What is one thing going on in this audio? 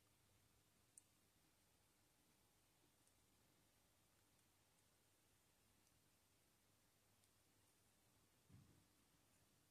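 Small plastic parts click faintly as fingers fit them together.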